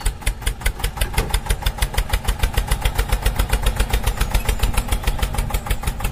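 A small toy tractor engine chugs steadily and rapidly.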